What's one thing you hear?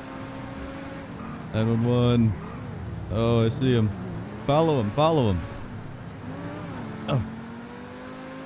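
A sports car engine hums steadily.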